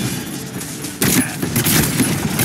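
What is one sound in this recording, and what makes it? Pistols fire rapid shots in a video game.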